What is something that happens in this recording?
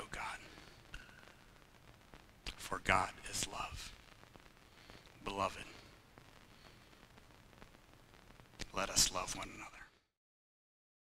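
A man speaks calmly through a microphone in an echoing hall, with pauses.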